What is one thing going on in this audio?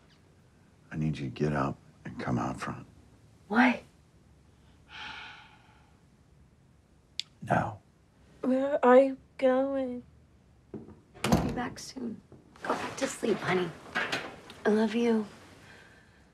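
A young woman breathes heavily and speaks in a hushed, frightened voice close by.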